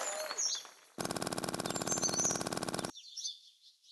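Coins clink in a quick rattling run.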